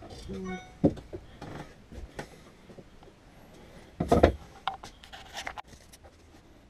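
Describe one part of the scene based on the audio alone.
Wooden boards knock and clatter together close by.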